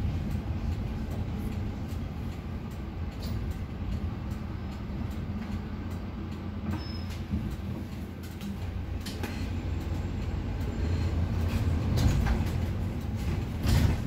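A bus engine rumbles low and steady while the bus drives along.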